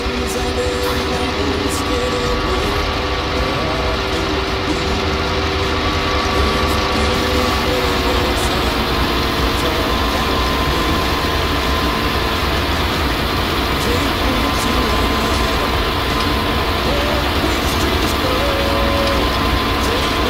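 A tractor engine hums steadily from inside the cab.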